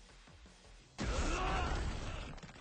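A video game energy blast sound effect whooshes and crackles.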